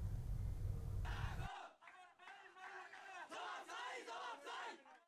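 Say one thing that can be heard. A crowd of men chants slogans in unison outdoors.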